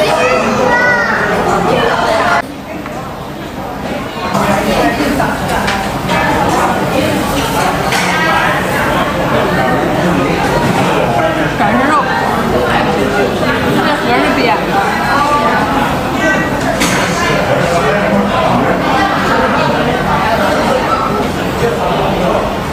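A crowd of diners chatters in a large room.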